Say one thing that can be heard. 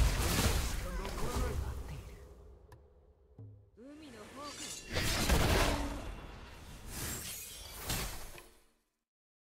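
Heavy impacts thud as attacks land.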